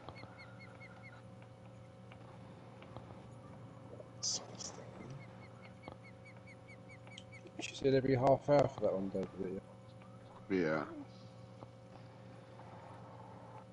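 A fishing reel clicks steadily as line is wound in.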